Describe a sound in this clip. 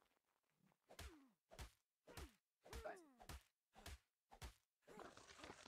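A hatchet chops repeatedly into a carcass with dull thuds.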